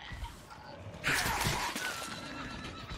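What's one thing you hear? A blade swings and strikes with a heavy thud.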